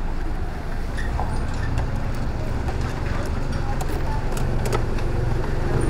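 A key clicks and scrapes in a scooter's ignition.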